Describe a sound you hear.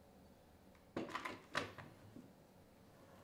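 A bar clamp clicks as it is tightened against wood.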